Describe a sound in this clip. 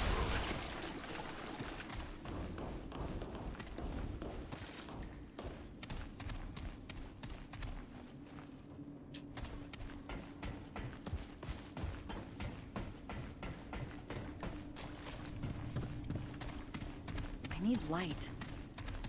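Footsteps tread quickly over hard floors.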